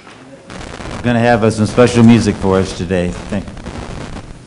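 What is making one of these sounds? An elderly man speaks loudly through a microphone in an echoing hall.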